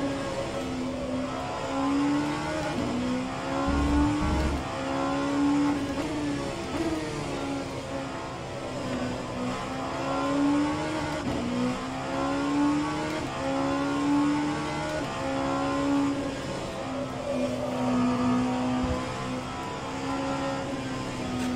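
A racing car engine revs up and drops back with each gear change.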